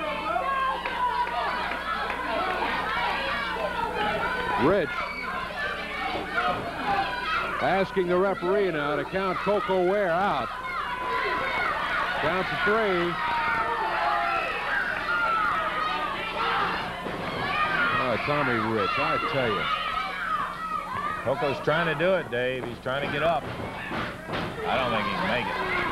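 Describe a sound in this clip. A crowd cheers and shouts in a large hall.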